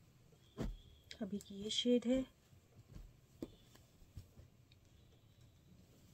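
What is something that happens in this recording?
Cloth rustles softly as it is unfolded by hand.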